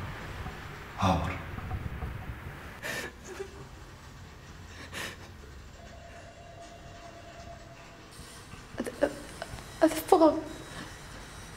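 A woman speaks tearfully and in distress, close by.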